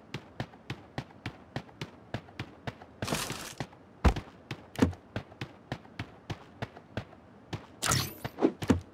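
Quick, steady footsteps patter on the ground.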